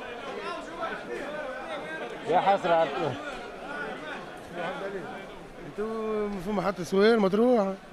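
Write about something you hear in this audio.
A man calls out loudly in a sing-song voice nearby.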